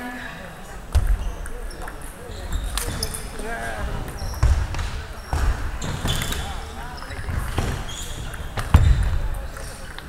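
A ping pong ball clicks back and forth between paddles and the table.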